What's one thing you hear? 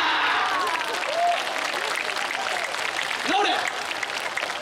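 A large group of young dancers shouts calls together.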